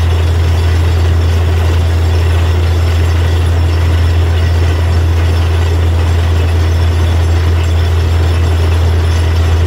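A drilling rig engine drones loudly and steadily.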